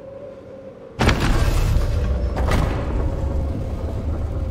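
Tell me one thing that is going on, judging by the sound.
A heavy mechanism powers up with a loud, deep rushing hum.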